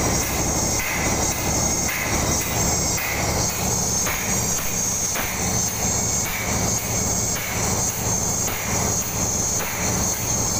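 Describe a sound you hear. An air-driven pump chugs and hisses loudly in a steady, quick rhythm.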